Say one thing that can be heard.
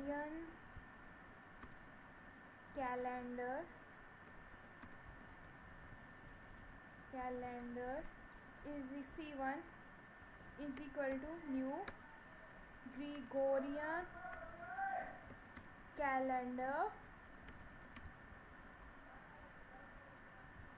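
Keys on a computer keyboard click in short bursts.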